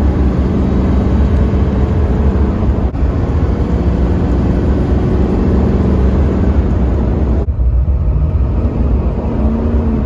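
A turbodiesel V8 pickup accelerates hard, heard from inside the cab.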